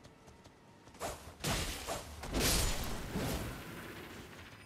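A sword slashes and strikes with sharp metallic hits.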